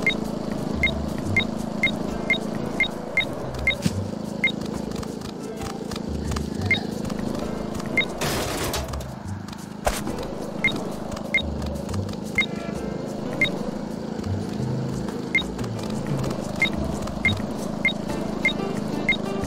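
A short bright chime rings again and again as pickups are collected.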